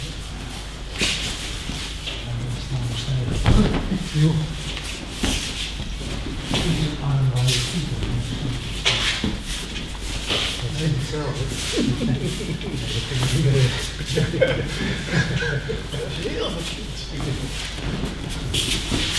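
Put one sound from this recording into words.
Bodies thump and slap onto mats in an echoing hall.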